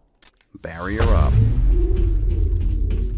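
A crackling energy shield hums loudly.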